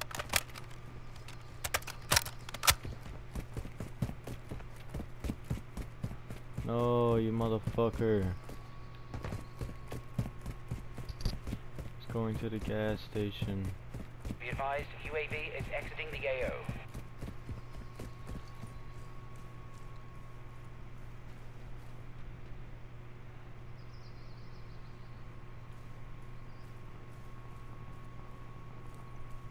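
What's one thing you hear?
Footsteps run quickly over hard pavement.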